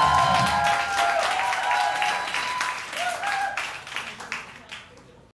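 An audience claps and cheers loudly, then the applause fades.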